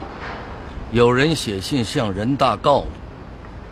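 A younger man speaks firmly up close.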